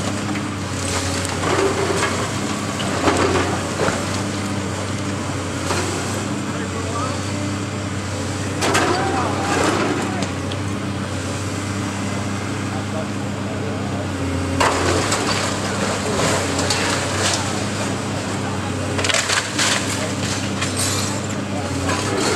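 Concrete and bricks crunch and clatter as a building is torn down.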